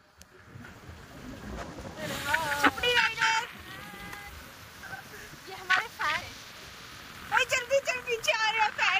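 A motorcycle engine passes close by.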